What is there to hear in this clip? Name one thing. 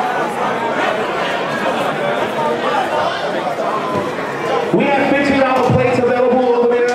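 A large crowd of young people chatters and calls out in a large echoing hall.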